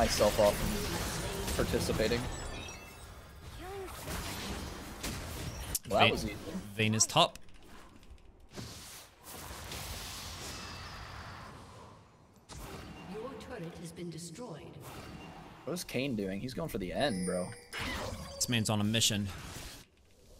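Game sound effects clash and zap.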